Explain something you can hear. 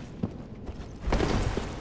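A sword swings with a heavy whoosh.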